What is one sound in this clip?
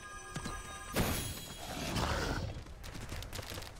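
A magical shimmer swells and fades.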